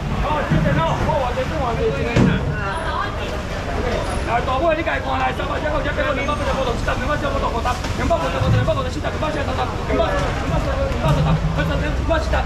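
A man calls out loudly with animation.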